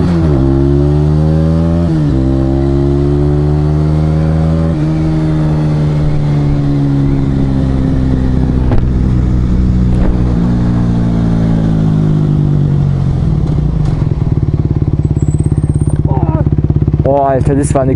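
A motorcycle engine revs up through the gears, then settles as the bike slows.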